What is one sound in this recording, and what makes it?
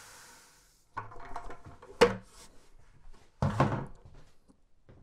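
A plastic bucket thumps and clatters.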